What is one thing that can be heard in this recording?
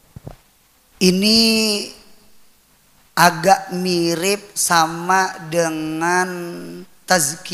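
A man chants melodically into a microphone.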